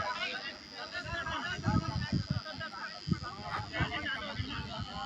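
Young men talk and call out to one another at a distance outdoors.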